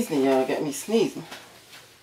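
A paper towel rustles softly under a hand.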